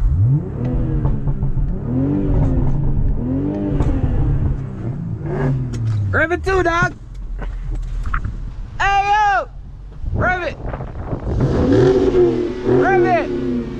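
A car engine revs again and again nearby with a deep rumble.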